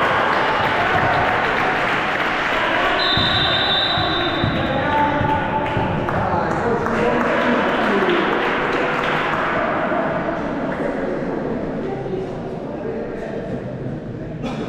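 Young people chatter and shout in a large echoing hall.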